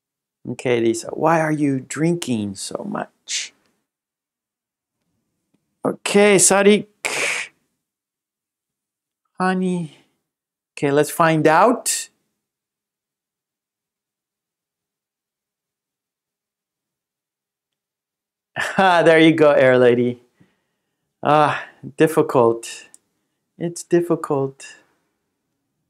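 A man speaks clearly and slowly into a microphone.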